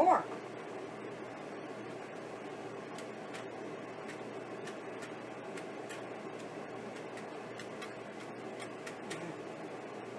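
A dehydrator fan hums steadily.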